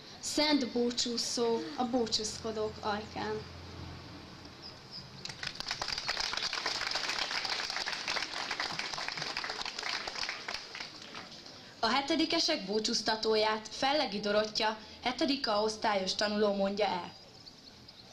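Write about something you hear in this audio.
A young woman speaks calmly into a microphone, heard over loudspeakers outdoors.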